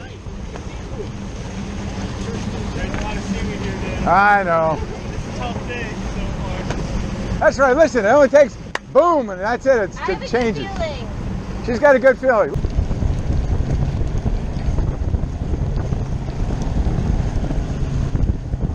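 Water splashes against a boat's hull.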